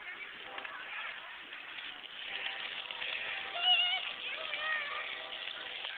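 Water sprays and splashes on the ground.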